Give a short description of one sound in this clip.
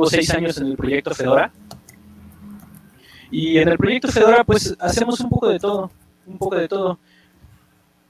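A man speaks with animation over an online call, heard through a headset microphone.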